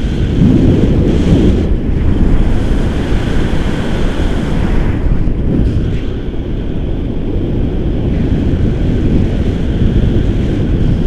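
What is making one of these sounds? Strong wind rushes and buffets loudly outdoors.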